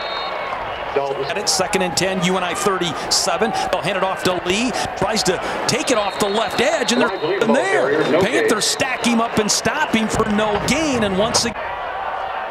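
Football players' pads clash and thud in tackles.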